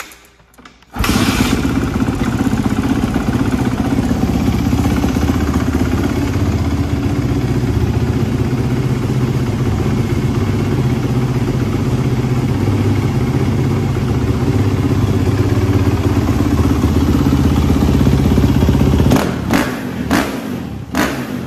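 A four-stroke 450 dirt bike engine idles.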